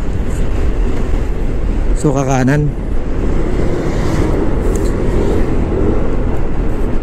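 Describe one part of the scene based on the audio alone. Wind buffets loudly against a microphone on a moving motorbike.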